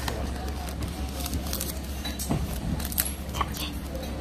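Paper crinkles in a young woman's hands.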